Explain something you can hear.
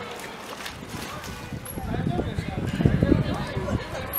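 Water splashes as a sea lion dives into a pool.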